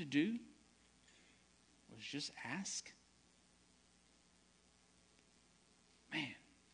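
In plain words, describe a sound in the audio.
A man speaks calmly through a microphone in a large room, with pauses between phrases.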